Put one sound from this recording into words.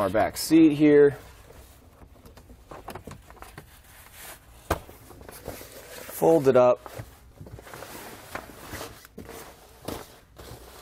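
A rubber cargo liner rustles and scrapes as it is handled.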